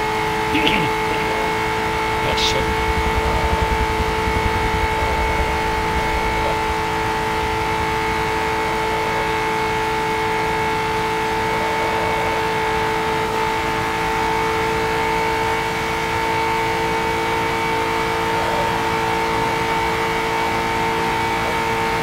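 A racing car engine drones at a steady high pitch.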